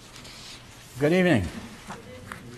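An elderly man speaks calmly into a microphone in a hall.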